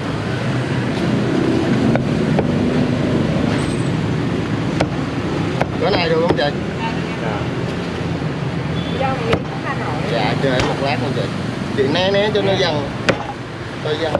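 A cleaver chops sharply on a wooden block.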